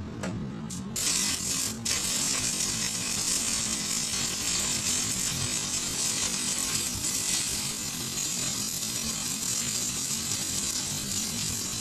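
A stick welding arc crackles and sizzles on a steel pipe.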